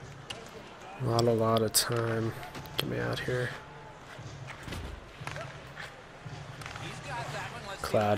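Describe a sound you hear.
Skates scrape and carve across ice.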